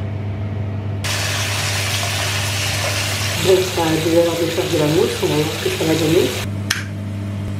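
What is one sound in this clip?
Water pours from a tap and splashes into a bathtub.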